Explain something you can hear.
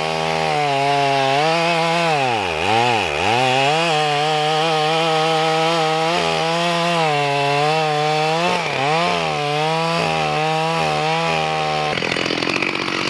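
A chainsaw engine runs, revving up and down.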